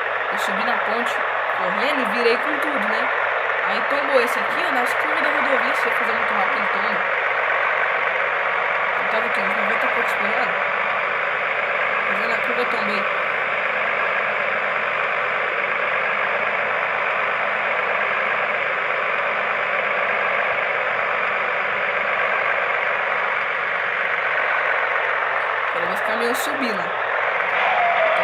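A truck engine drones steadily at a constant speed.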